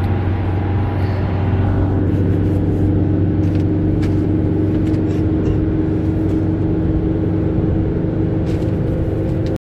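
A vehicle's engine hums steadily, heard from inside the car.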